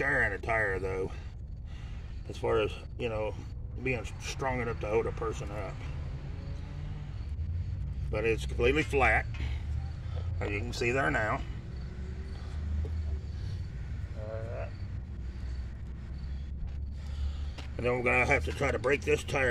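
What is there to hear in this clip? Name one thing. A man talks calmly close by.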